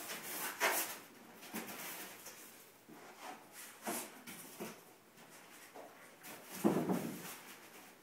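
Large foam boards scrape and thump as they are moved.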